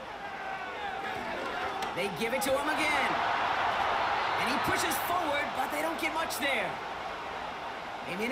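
A large stadium crowd cheers and roars loudly.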